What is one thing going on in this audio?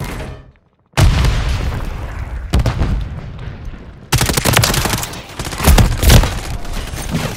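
Rifle gunfire rattles in loud bursts.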